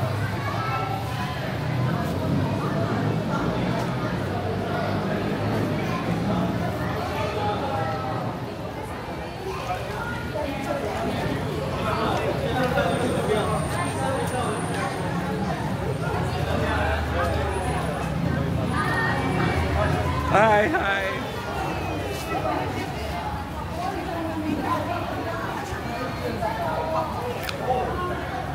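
Men, women and children chatter throughout in a roomy, echoing space.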